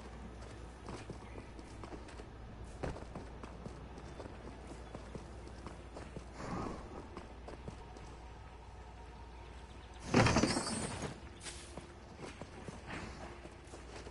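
Quick footsteps patter on stone.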